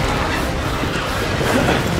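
Footsteps run hurriedly across stone.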